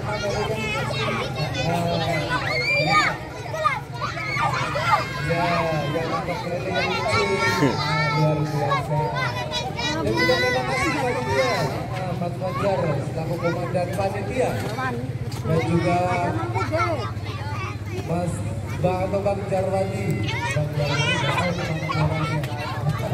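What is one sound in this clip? Young girls shout and laugh close by.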